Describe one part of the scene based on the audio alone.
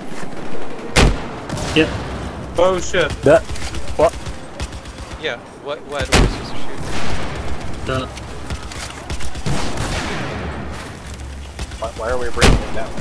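Guns fire in sharp, loud bursts.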